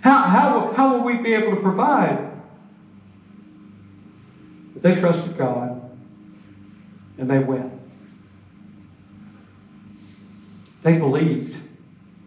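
An elderly man speaks calmly through a microphone, with pauses, in a large echoing hall.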